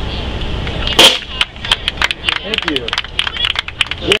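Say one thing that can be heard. A drummer strikes drums and cymbals with sharp hits.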